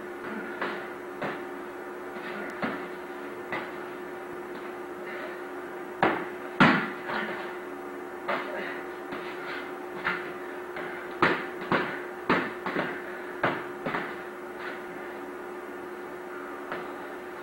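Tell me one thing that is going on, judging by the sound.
Padded sticks thump against each other in quick bouts of strikes.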